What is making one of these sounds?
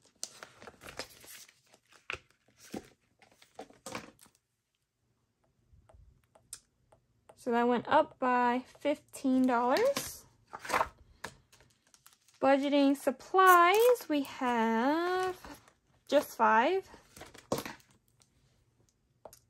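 Plastic sleeves and paper bills rustle as hands handle them.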